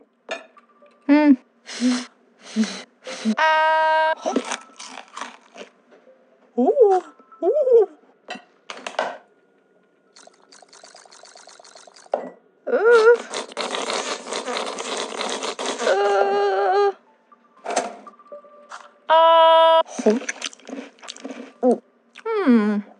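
A cartoon character chews and munches noisily.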